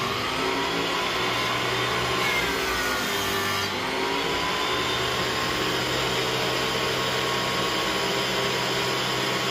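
A planer motor hums steadily.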